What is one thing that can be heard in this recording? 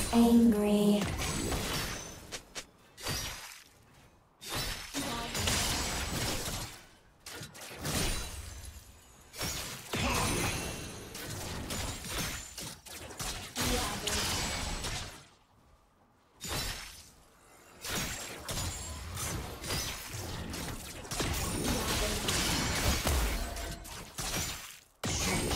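Spells crackle and explode in a fantasy battle game.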